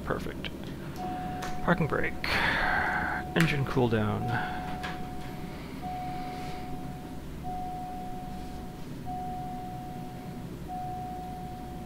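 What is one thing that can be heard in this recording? A warning tone beeps in even, repeated pulses.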